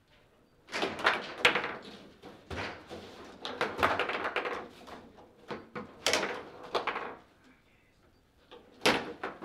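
Sharp clacks ring out as a hard ball is struck and bounces off the walls of a table football game.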